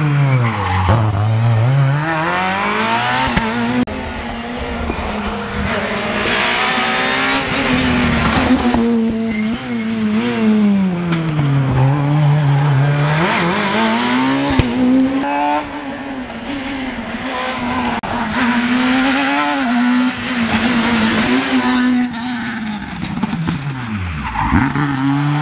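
Tyres screech on tarmac as a rally car slides through a bend.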